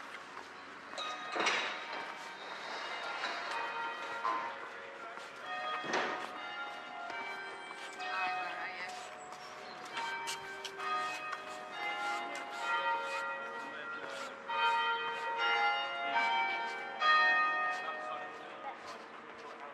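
Church bells ring out in a tumbling peal nearby, outdoors.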